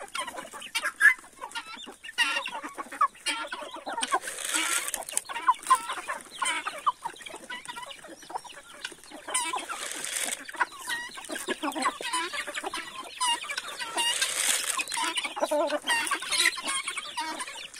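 Guinea fowl call out harshly.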